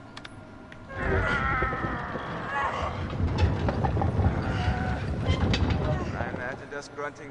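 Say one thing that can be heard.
A heavy metal cart rolls with a loud rumble.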